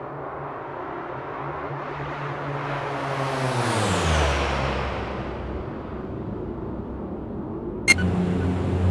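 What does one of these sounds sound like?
A propeller plane's engines drone past, rising and then falling in pitch as it flies by.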